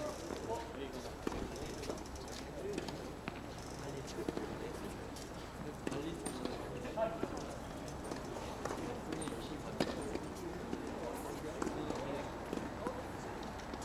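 A tennis ball is hit back and forth with rackets in the distance.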